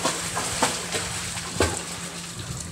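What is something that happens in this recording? Water splashes loudly in a pool.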